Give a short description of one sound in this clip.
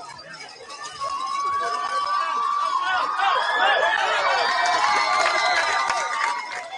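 A crowd cheers and yells loudly, rising suddenly.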